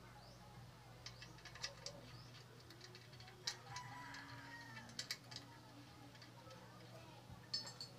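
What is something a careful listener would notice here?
Small metal parts click and clink.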